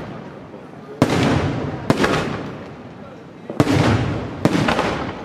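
Fireworks crackle and sizzle after each burst.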